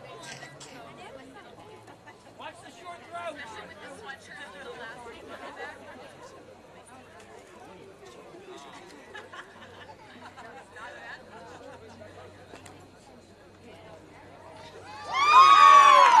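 Young men shout faintly across an open field outdoors.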